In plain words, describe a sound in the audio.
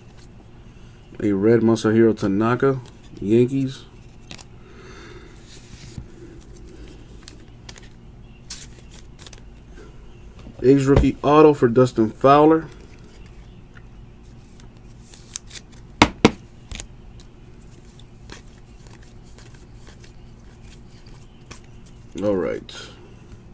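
Trading cards slide and rustle between fingers.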